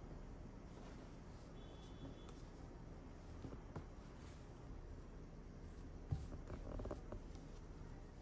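A hand brushes softly over soft fabric.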